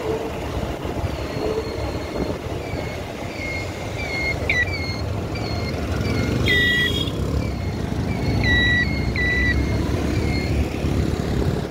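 Vehicle horns beep repeatedly in the traffic nearby.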